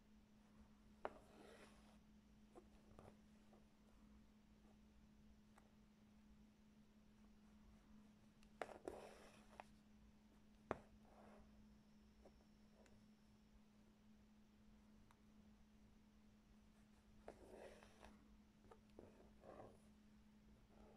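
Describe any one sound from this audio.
Thread rustles as it is pulled through cloth.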